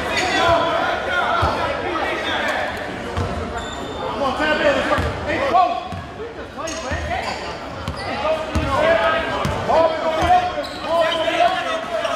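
A basketball bounces on a wooden gym floor in steady dribbles.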